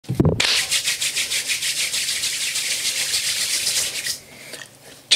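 Hands clap rapidly and steadily.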